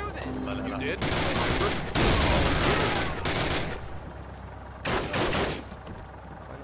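Rapid gunshots fire and echo indoors.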